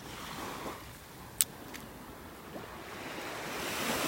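Small waves lap softly at the shore.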